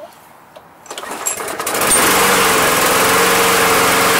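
A lawn mower engine starts and runs with a loud, steady roar.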